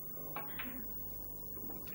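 Snooker balls click together sharply.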